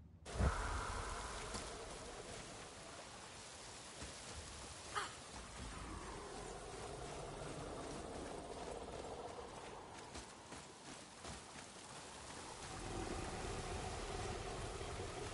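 Heavy footsteps crunch on gravel and rock.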